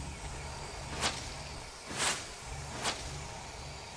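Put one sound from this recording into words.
Sharp spell hits crack again and again.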